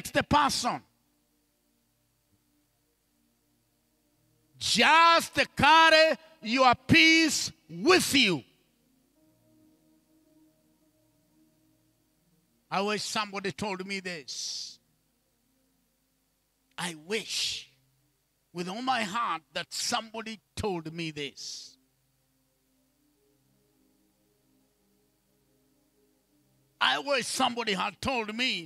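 A man preaches with animation through a microphone and loudspeakers, in bursts with pauses.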